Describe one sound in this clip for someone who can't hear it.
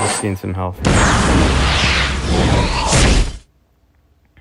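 A loud rushing burst of magic and battle effects plays.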